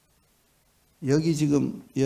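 An elderly man speaks through a microphone in a calm, warm voice.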